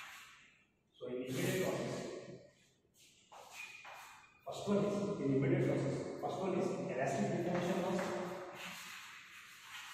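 A young man speaks calmly in a room with a slight echo.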